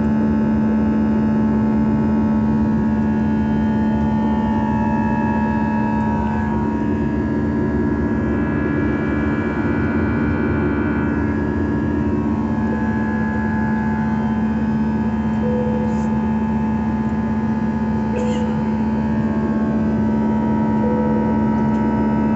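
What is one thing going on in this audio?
The turbofan engines of a jet airliner roar as it climbs after takeoff, heard from inside the cabin.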